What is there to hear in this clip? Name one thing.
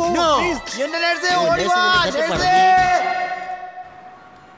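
A man shouts loudly and excitedly nearby.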